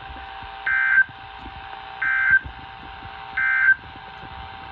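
An alarm clock beeps loudly in short repeated bursts.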